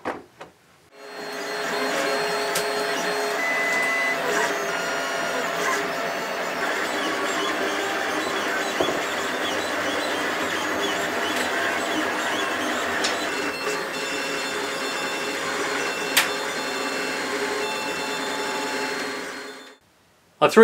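Printer stepper motors whine and hum steadily with shifting tones.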